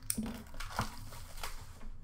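Hands tear open a foil card pack with a crinkling rustle.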